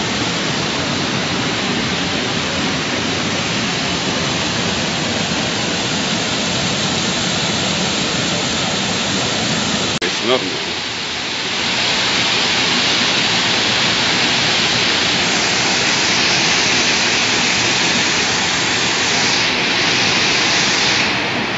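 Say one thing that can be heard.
Water rushes and splashes over a low weir into a river.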